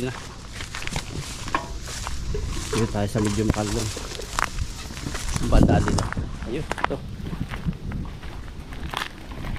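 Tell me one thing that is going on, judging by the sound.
Footsteps crunch through dry grass.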